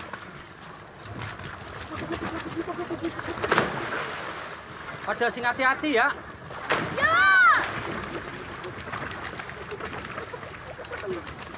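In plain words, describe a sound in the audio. A floating bicycle churns through the water.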